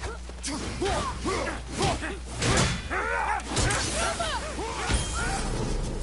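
Fire roars in a burst of flame.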